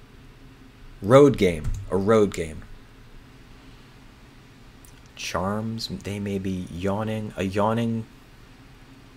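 A man speaks into a close microphone in short, thoughtful bursts with pauses between them.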